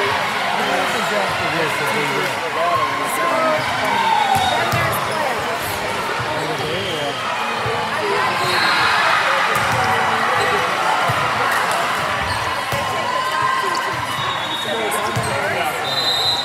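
A crowd of young women chatter and cheer loudly in a large echoing gym.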